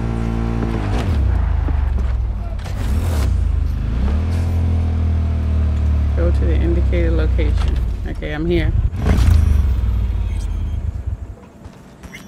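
A motorcycle engine roars and revs.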